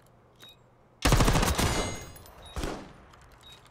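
A rifle fires a loud rapid burst.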